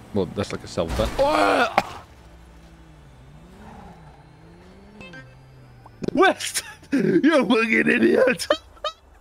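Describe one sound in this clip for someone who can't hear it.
A young man laughs loudly and talks with animation close to a microphone.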